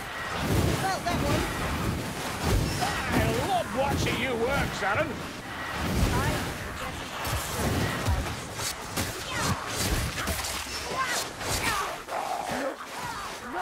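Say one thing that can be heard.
Creatures screech and snarl.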